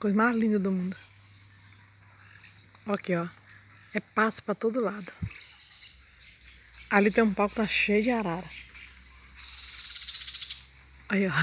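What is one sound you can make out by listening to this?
A bird calls out in loud, repeated squawks nearby.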